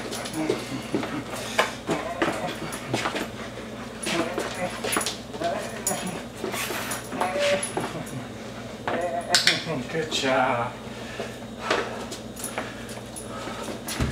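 A dog's claws click on a hard floor.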